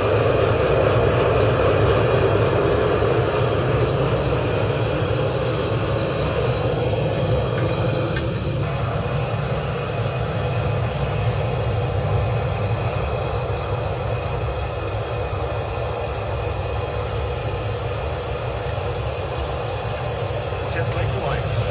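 A gas burner roars steadily inside a furnace.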